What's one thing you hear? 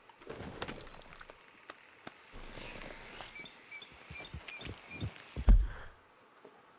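A horse's hooves thud on soft ground.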